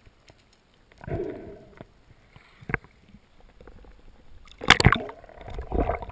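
Water splashes and bubbles as a diver breaks the surface.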